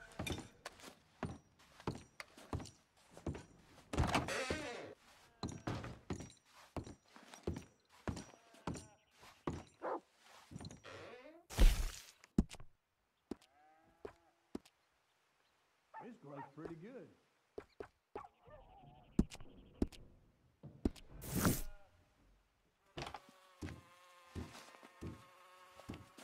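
Boots thud on a wooden floor at a steady walking pace.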